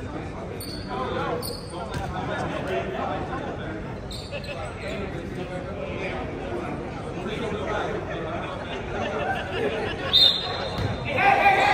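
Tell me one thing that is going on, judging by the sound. A crowd of young men and women talks and calls out in a large echoing hall.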